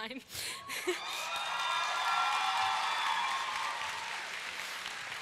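A crowd of young people cheers and whoops.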